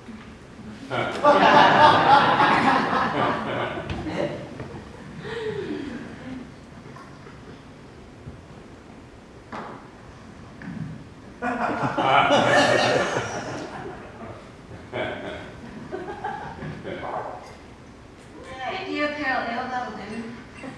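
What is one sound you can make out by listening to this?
A woman speaks with animation in an echoing hall.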